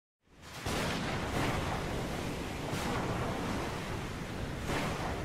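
Waves crash and surge against a ship's hull.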